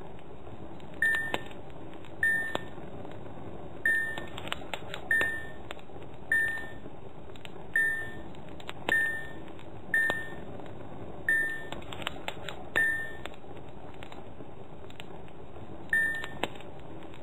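A short bright chime plays each time a marble is found.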